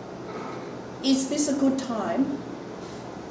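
A woman speaks briefly close by.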